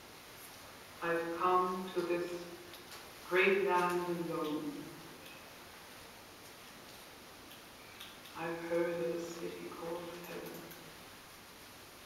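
A man sings steady notes nearby.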